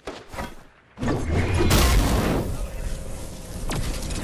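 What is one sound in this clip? A magical burst whooshes loudly.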